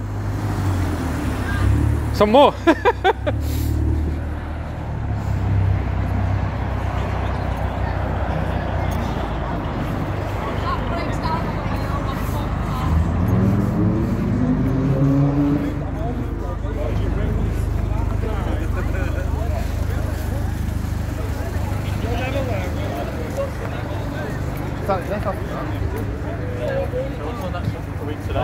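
A car engine idles and rumbles low nearby.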